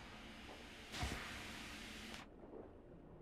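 A body splashes loudly into water.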